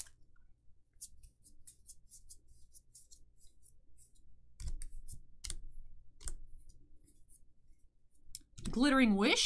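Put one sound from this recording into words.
Playing cards click and slide against each other.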